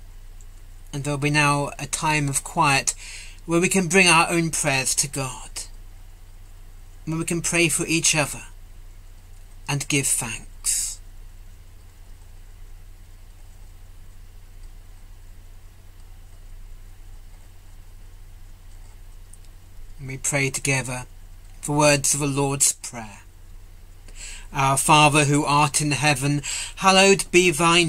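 A middle-aged man speaks calmly over an online call, pausing between phrases.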